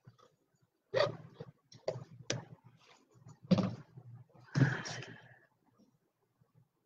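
A hand thumps and rubs on a board.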